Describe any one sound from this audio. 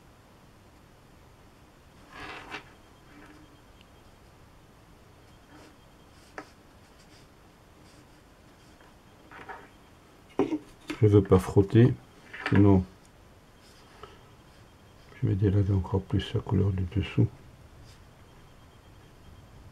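A brush softly strokes across paper.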